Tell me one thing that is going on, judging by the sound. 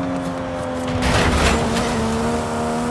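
A car scrapes and bangs against something with a sudden crash.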